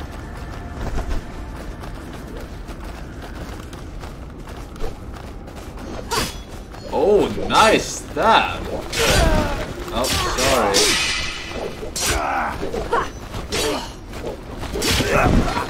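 Swords clash and slash in a game.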